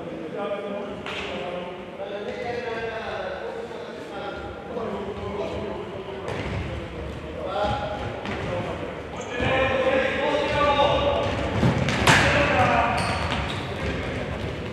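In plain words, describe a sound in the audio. Men shout to each other across a court.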